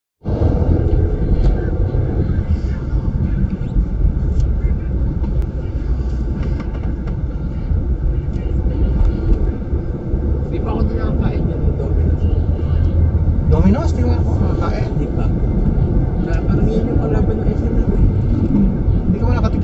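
A car's engine hums steadily while driving.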